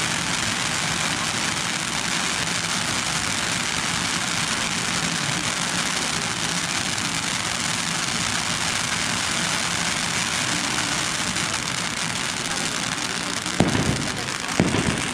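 A firework fountain hisses and crackles as it sprays sparks.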